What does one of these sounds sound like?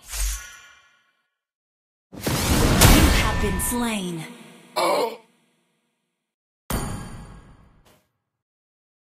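A game character's attack bursts out with sharp whooshes and ringing tones.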